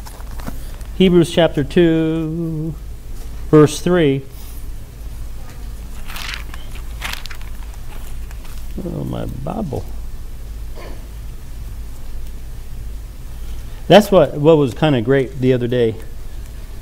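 A middle-aged man speaks slowly and calmly into a microphone, with pauses.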